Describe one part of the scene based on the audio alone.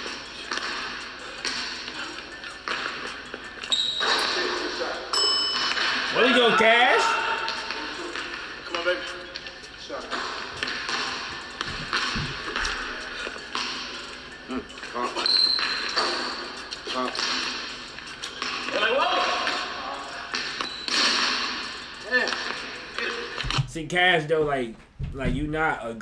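A basketball bounces rhythmically on a hard court.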